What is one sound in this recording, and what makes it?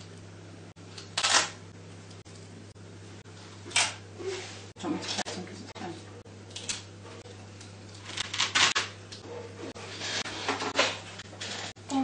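Cards rip off a hook-and-loop strip.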